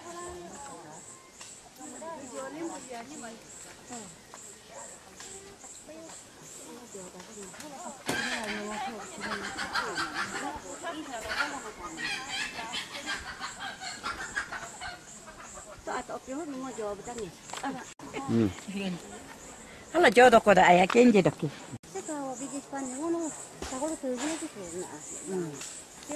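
Several women talk nearby with animation.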